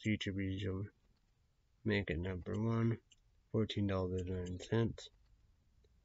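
A young man speaks calmly and close to a microphone, in short phrases.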